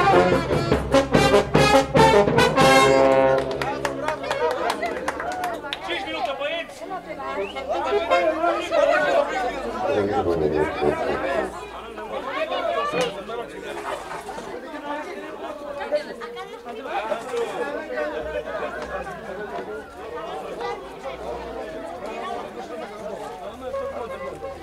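A crowd of guests chatters and cheers.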